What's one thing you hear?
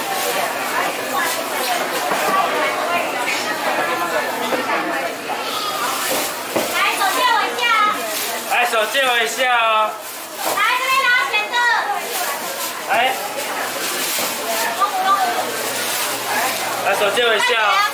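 A crowd chatters all around in a busy hall.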